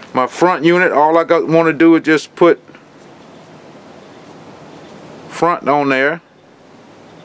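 A man talks calmly up close.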